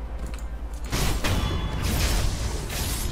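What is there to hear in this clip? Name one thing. Sword clashes and impacts ring out.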